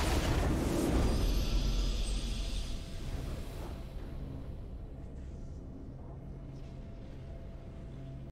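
A triumphant victory fanfare swells and slowly fades.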